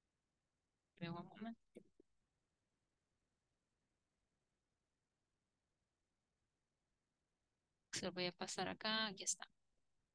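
A woman speaks calmly through an online call, in short bursts with pauses.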